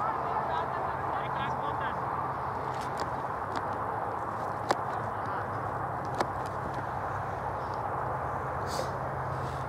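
Football players shout to each other across an open field in the distance.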